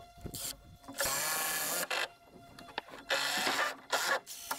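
A cordless drill drives screws into wood in loud bursts.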